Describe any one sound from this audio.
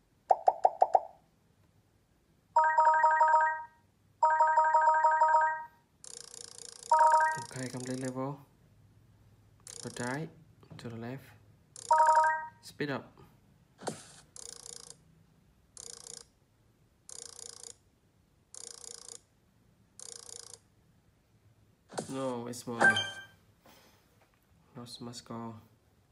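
Bright electronic game chimes and whooshing effects play from a tablet's speaker.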